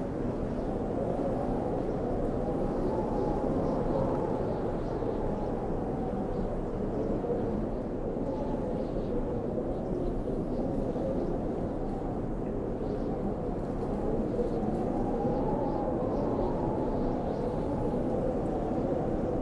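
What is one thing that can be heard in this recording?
Wind blows steadily and low outdoors in a snowfall.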